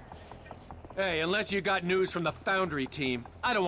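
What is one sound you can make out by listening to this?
A man speaks curtly.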